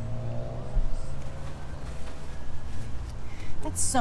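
Paper rustles close by.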